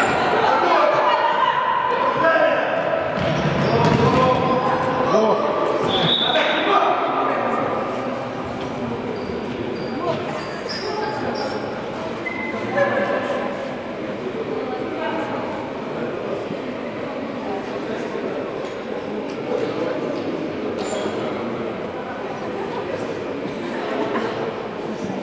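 Men shout and call out to each other across a large echoing hall.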